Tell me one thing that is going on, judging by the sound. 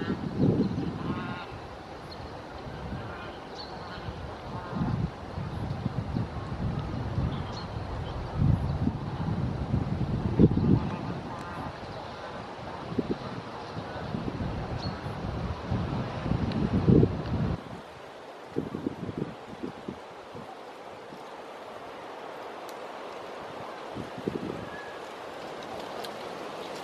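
Small waves lap against the shore.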